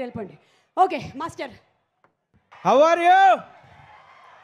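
A young woman speaks and exclaims excitedly nearby.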